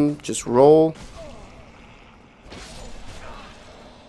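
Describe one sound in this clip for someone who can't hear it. A sword strikes and cuts into flesh.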